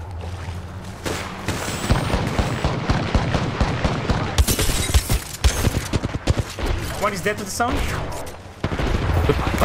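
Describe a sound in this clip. Rapid gunfire crackles and bangs.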